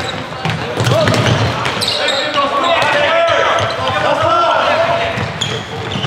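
Floorball sticks clack against a ball in an echoing hall.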